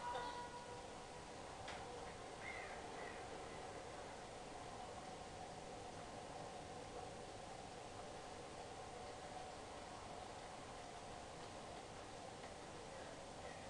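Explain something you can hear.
An eerie low drone hums steadily throughout.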